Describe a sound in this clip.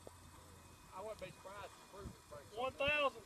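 A man talks nearby outdoors.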